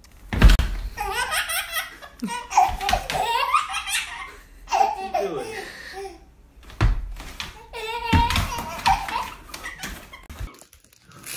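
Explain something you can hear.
A baby laughs and squeals with delight close by.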